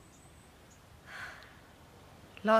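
A young woman breathes out a long sigh.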